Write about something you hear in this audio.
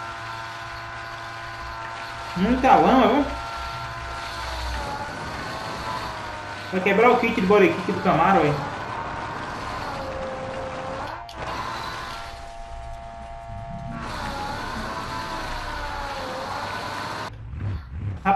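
A car engine drones and revs up and down.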